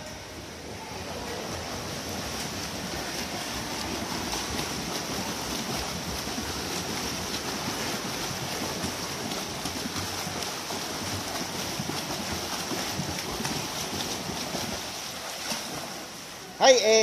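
A swimmer splashes steadily through water in an echoing indoor pool.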